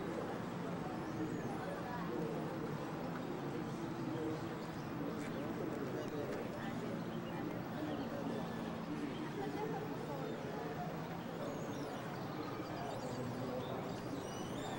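A group of adults and children chatter and talk nearby outdoors.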